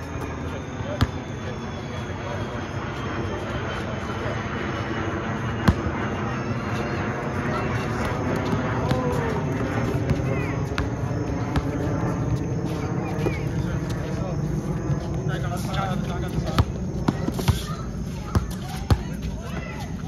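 A basketball bounces on an outdoor asphalt court.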